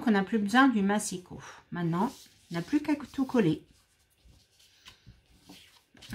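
Paper slides and rustles on a hard surface.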